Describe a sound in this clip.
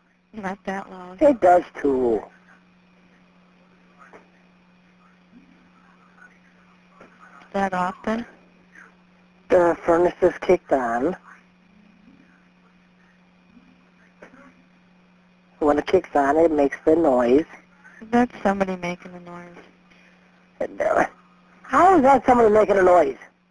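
A woman talks over a phone line.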